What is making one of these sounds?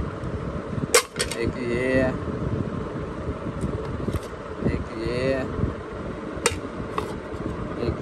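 Plastic trays clack and knock together as they are lifted and set down.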